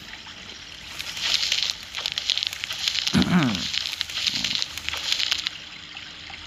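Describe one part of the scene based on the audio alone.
A wolf's paws pad softly on grass.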